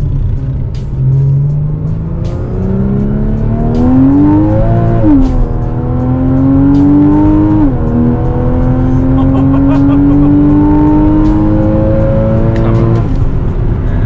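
A car engine revs up through the gears as the car speeds up.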